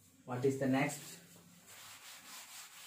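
A cloth rubs across a blackboard.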